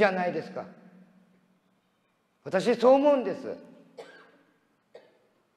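An elderly man speaks with animation through a microphone in a large echoing hall.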